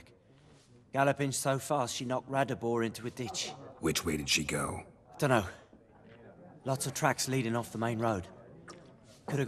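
A middle-aged man speaks calmly and casually.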